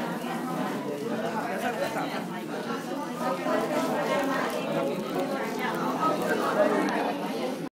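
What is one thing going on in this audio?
An elderly woman talks close by.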